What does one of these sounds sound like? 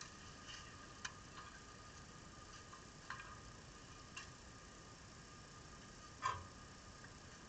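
A tennis ball bounces a few times on a clay court.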